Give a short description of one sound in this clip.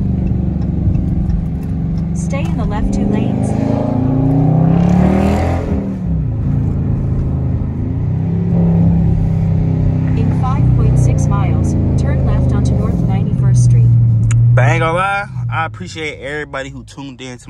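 A car engine hums as the car drives, its pitch rising and falling.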